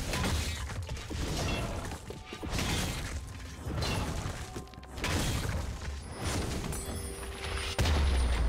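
Game spells and weapon hits clash in a busy video game battle.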